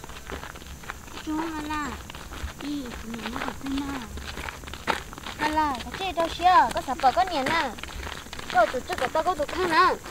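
Footsteps crunch on a gravel road.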